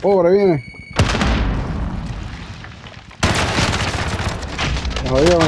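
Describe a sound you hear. Gunshots crack nearby in rapid bursts.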